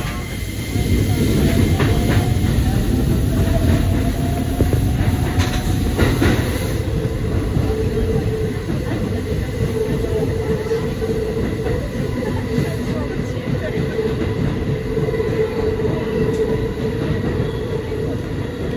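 A train rumbles steadily along the track, heard from inside the cab.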